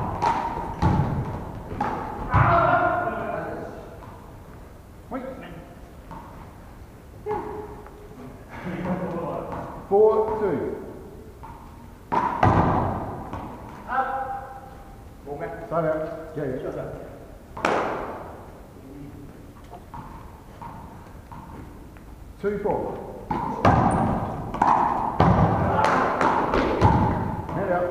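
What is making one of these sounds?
Young men shout and call out to one another in a large echoing hall.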